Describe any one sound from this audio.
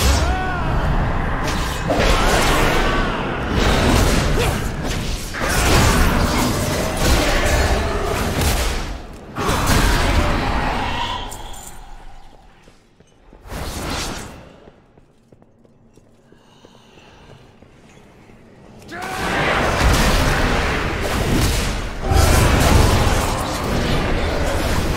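Game combat effects clash and whoosh.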